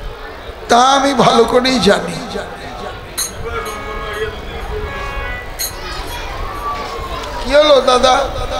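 A man sings loudly and expressively through a microphone and loudspeakers.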